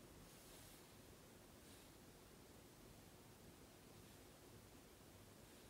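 A small tool rubs softly against paper.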